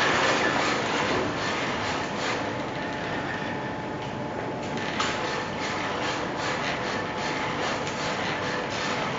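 Motors of a walking robot whir steadily.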